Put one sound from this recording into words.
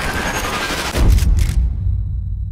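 A suppressed rifle fires a single muffled shot.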